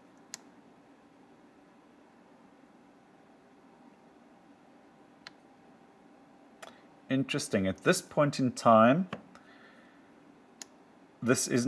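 A small plastic button clicks softly a few times.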